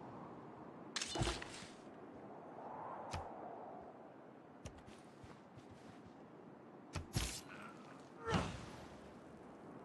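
Short computer game sound effects chime and whoosh now and then.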